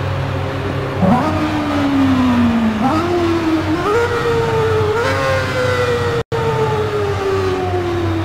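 A racing car engine revs hard and climbs through the gears.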